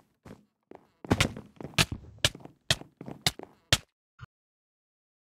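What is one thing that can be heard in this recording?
A sword strikes with sharp hits in quick succession.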